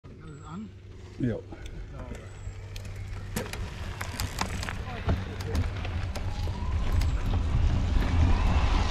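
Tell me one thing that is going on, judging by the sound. Bicycle tyres crunch and rattle over gravel.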